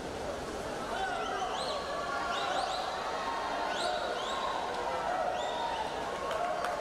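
Spectators whistle and yell louder as the race goes on.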